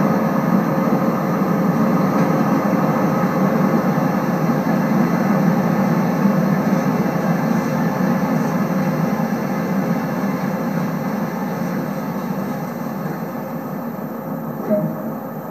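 A train rumbles slowly into a station and comes to a stop.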